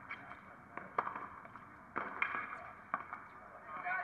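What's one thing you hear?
A tennis ball is struck sharply by a racket, several times in a rally.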